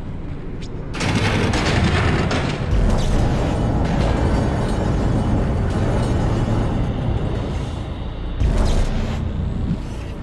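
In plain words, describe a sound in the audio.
A futuristic gun fires in bursts.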